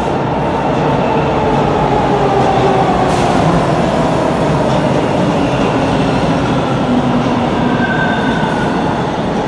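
Train brakes squeal with falling pitch.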